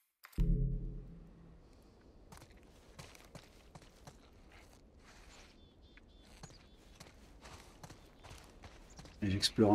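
Footsteps scuff steadily on stone pavement.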